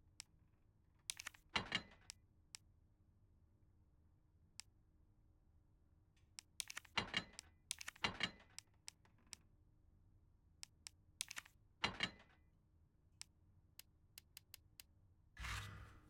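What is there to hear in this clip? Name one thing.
Short menu clicks and chimes sound one after another.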